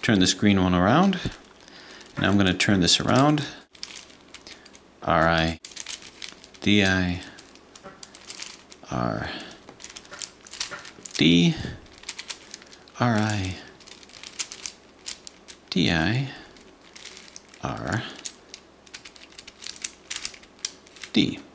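Plastic puzzle pieces click and rattle as they are twisted.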